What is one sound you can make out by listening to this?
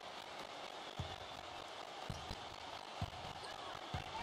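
A basketball bounces on a hardwood court with dull thumps.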